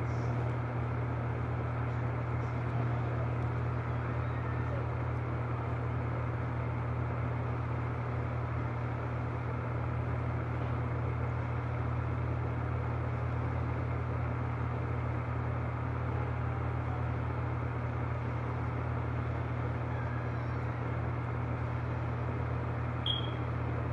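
Plastic toy parts click and rattle as they are handled up close.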